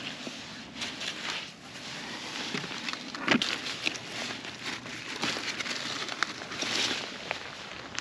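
A knife snaps through a zucchini stem.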